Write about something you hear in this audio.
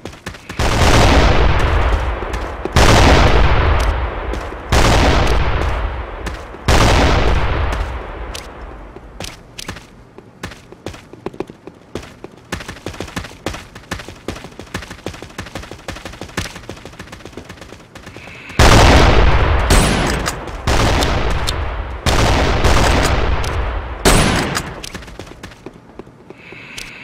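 A sniper rifle fires loud booming shots in a video game.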